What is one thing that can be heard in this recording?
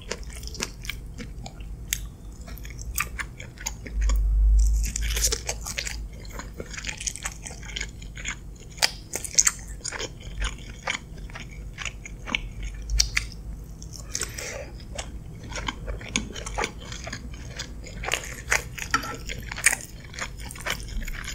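A fork scrapes and clinks against a glass dish.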